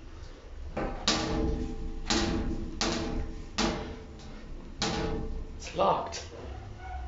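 A hand bangs repeatedly on metal doors.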